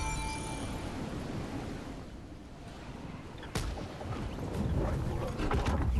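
A glider whooshes through the air as it descends.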